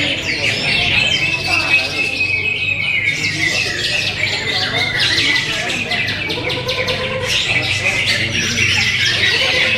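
A small parrot chirps and twitters steadily close by.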